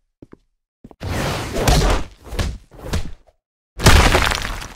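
Sharp energy blasts burst in rapid bursts.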